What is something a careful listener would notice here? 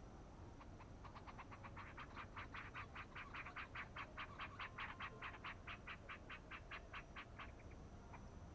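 A bird calls in a rapid, fast series of chirps.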